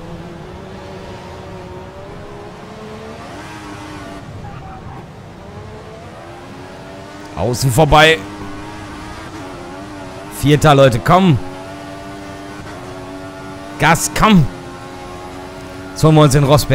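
A racing car engine whines steadily and revs up in loud bursts as it speeds up.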